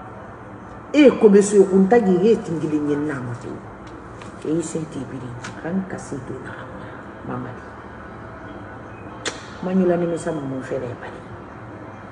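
A woman speaks emotionally close to a microphone, her voice breaking.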